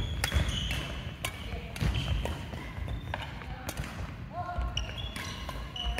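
Sneakers squeak sharply on a wooden court floor.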